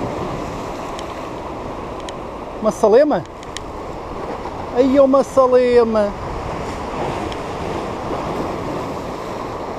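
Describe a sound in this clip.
Sea waves wash and break against rocks.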